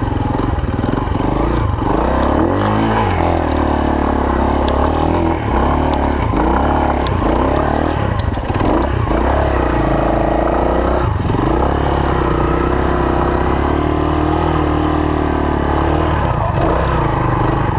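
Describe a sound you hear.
Tyres crunch over rough ground and rocks.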